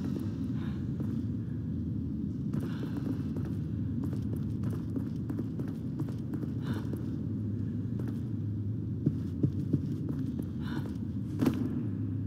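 Footsteps thud on a hard stone floor.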